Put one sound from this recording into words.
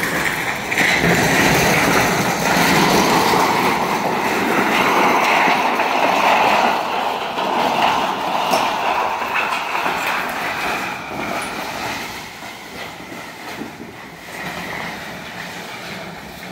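A sheet of corrugated metal scrapes and rattles as it is dragged over dry, stony ground.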